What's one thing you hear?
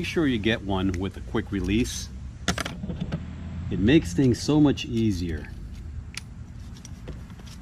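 Plastic parts of a power tool click and snap.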